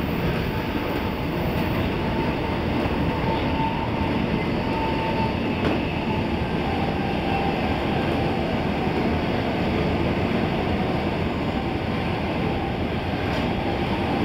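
Wheels clatter and squeal on the rails.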